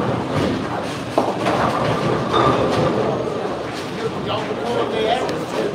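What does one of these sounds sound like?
A busy crowd murmurs and chatters in a large echoing hall.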